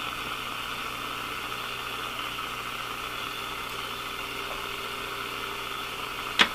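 A tube radio hisses with steady static through its speaker.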